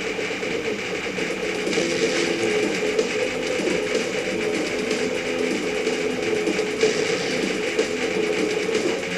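Rapid electronic shots rattle without pause.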